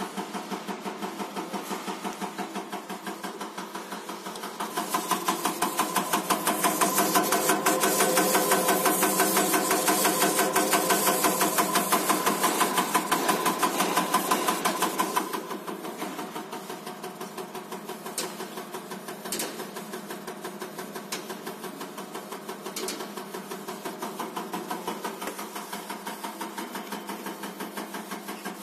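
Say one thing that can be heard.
A machine ticks rapidly and steadily.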